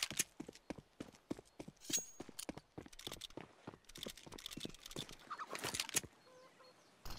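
Footsteps patter quickly on hard stone.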